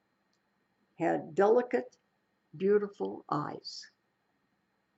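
An elderly woman speaks calmly and close to a microphone in two short phrases.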